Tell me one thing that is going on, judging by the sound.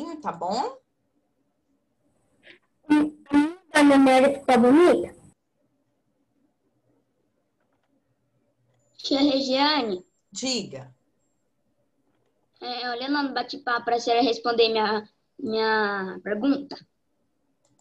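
A young girl talks through an online call, in short bursts with pauses.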